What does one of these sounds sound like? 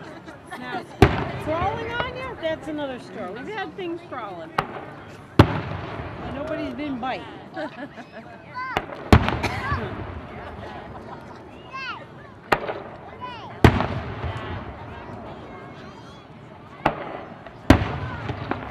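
Distant firework shells burst with deep booms.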